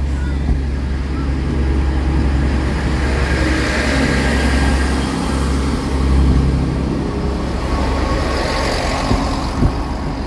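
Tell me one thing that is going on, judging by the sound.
Train wheels clatter and rumble over the rails.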